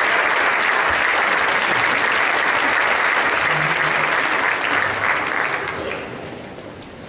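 An audience claps loudly in a large echoing hall.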